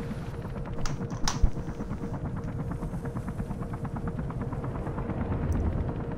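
A helicopter's rotor thrums overhead.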